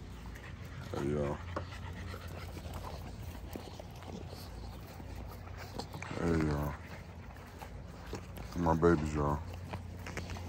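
Bully puppies yelp and whine up close.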